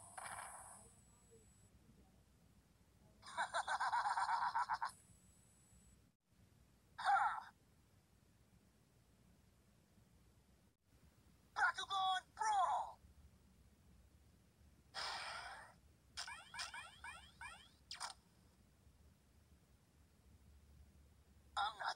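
Electronic game sound effects and short jingles play in bursts from a small handheld speaker.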